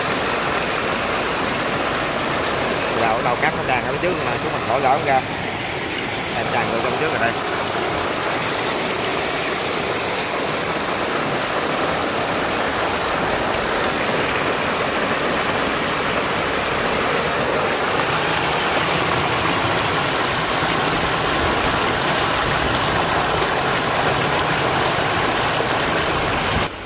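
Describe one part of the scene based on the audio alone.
Muddy water gushes steadily out of a pipe and splashes onto wet mud.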